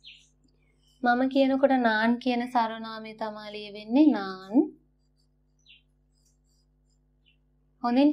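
A young woman speaks clearly and slowly, close by.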